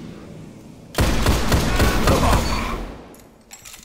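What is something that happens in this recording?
A gun fires in loud, rapid bursts.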